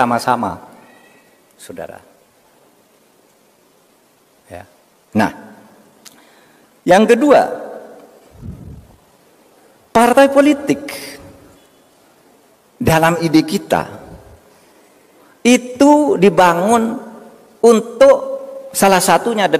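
A middle-aged man speaks slowly and calmly into a microphone, in bursts with pauses, in a room with some echo.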